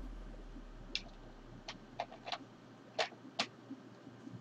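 Small clicks and taps come from an object handled close to a microphone.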